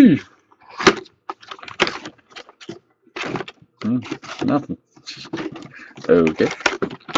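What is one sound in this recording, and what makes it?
Cardboard crinkles and scrapes as a box is pulled open.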